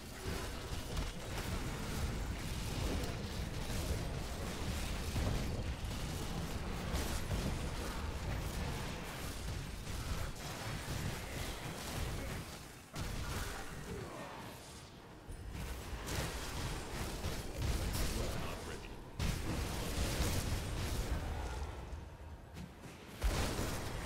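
Spells and weapons crash and explode in a fast, busy game battle.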